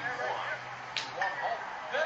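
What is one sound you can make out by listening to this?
A bat hits a baseball, heard through a television speaker.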